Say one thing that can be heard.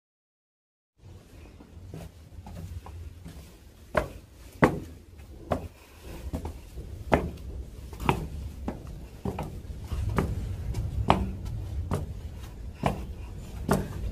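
Footsteps scuff and tap on stone stairs.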